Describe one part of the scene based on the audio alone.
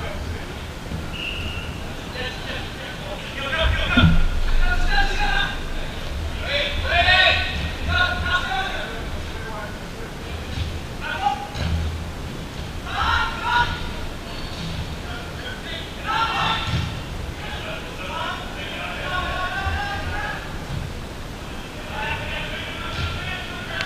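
Young men shout and call to each other across a large echoing hall.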